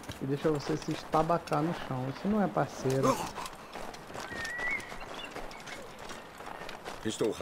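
An adult man talks with animation close to a microphone.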